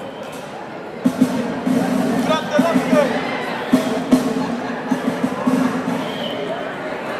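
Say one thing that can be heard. A drummer pounds the drums and cymbals.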